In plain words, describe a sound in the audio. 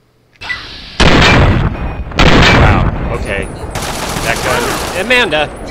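Gunshots boom in quick, loud bursts.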